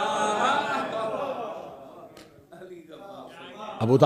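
A man laughs into a microphone.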